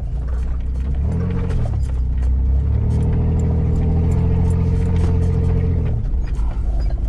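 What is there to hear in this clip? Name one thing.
A car engine revs up and strains, then eases off.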